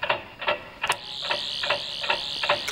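A small handheld device buzzes with a high, warbling whine.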